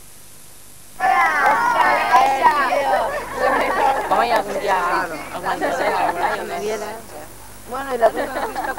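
Teenage boys and girls chatter loudly together close by.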